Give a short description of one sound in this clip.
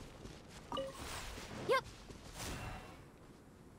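A magical burst whooshes and chimes.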